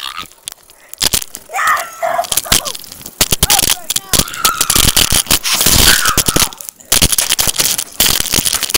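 A bicycle rattles and clatters as it is handled.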